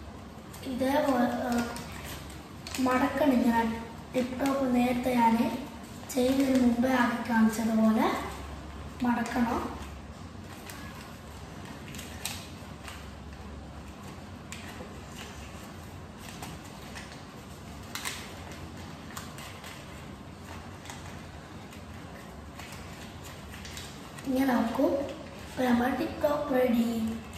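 Paper crinkles and rustles as it is folded.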